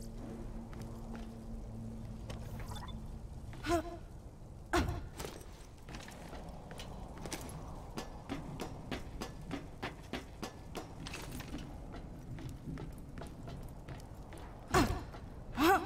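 Footsteps clank on metal.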